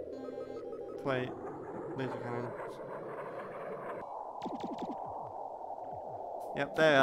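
A spaceship engine drones steadily.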